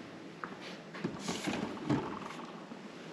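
A plastic jug knocks and rustles as a hand moves it.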